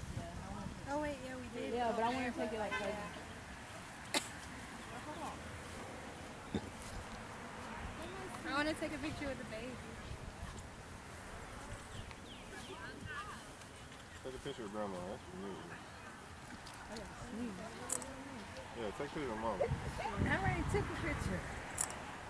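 Young women talk with animation close by.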